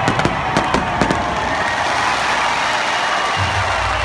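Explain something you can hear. Fireworks bang and crackle loudly.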